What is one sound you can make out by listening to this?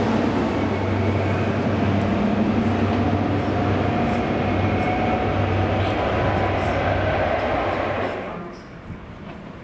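A diesel train engine rumbles loudly and then fades away into a tunnel.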